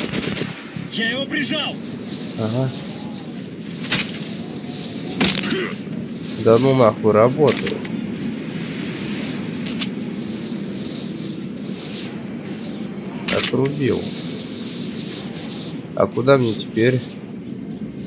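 A young man talks casually into a nearby microphone, in short bursts.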